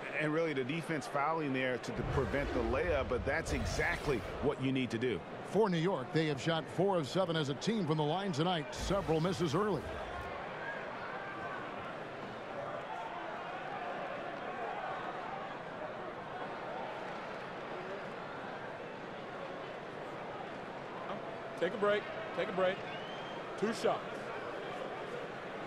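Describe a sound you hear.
A crowd murmurs steadily in a large arena.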